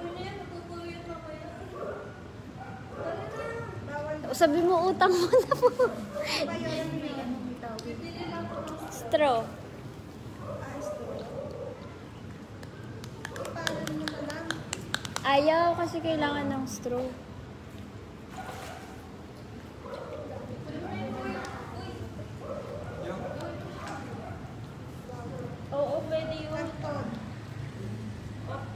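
A young woman talks casually and close to the microphone.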